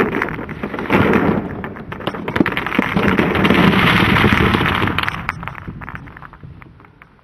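Glass marbles pour out of a plastic tub and clack against each other.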